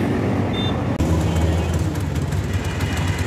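A motor rickshaw engine idles with a low hum.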